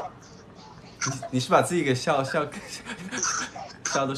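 A young man laughs heartily close by.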